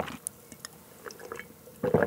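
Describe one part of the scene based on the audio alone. A young man gulps a drink.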